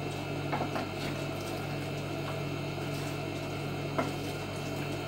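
A hand mixes food in a wooden bowl with light knocks.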